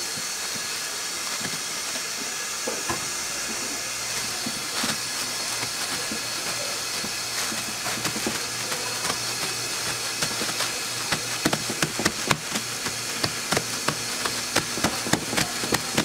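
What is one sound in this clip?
Hands pat and press soft dough on crinkling plastic.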